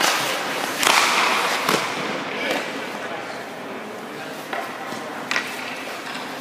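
Hockey pucks smack against sticks and pads.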